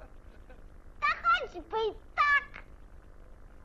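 A young boy speaks with animation in a cartoon voice.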